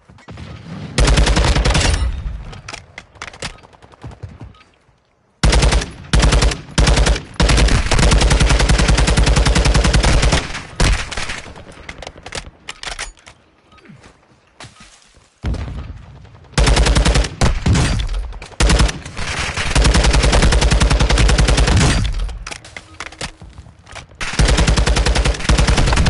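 An automatic rifle fires in rapid, loud bursts.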